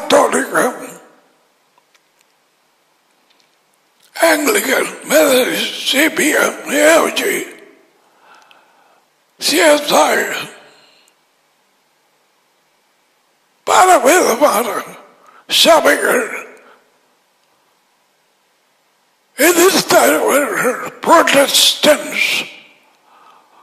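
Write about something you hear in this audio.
An elderly man speaks with emphasis into a close headset microphone, in bursts with long pauses.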